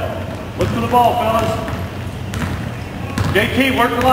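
A basketball bounces on the wooden floor as a player dribbles.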